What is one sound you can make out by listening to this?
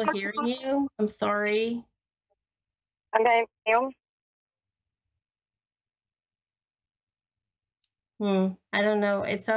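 A middle-aged woman speaks calmly through a microphone on an online call, in short bursts with pauses.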